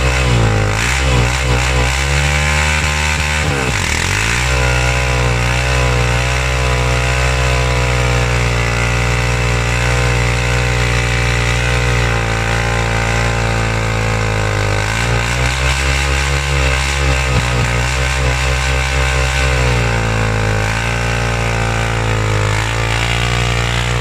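A car engine roars loudly at high revs, rising and falling.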